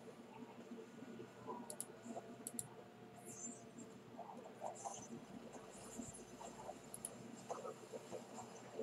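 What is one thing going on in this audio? Spells crackle.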